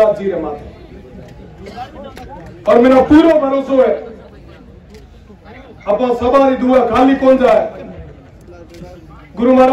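A young man sings loudly into a microphone in long, held phrases.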